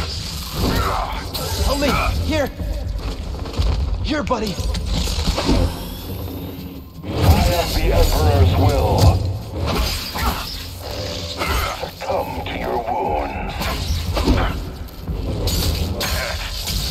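Heavy impacts thud during a fight.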